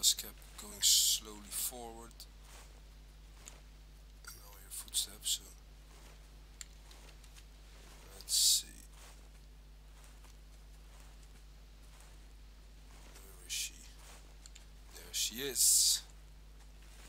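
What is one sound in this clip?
Tall grass rustles as someone crawls through it.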